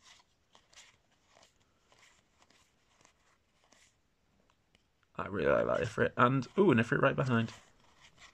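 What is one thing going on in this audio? Playing cards rustle and slide against each other as they are flipped through by hand.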